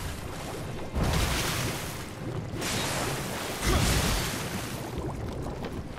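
Explosions boom with a crackle of fire.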